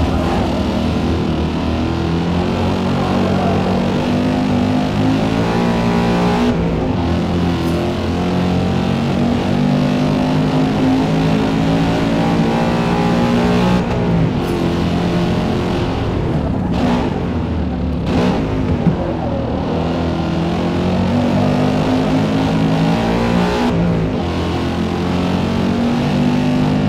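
A sports car engine revs at full throttle and shifts up through the gears.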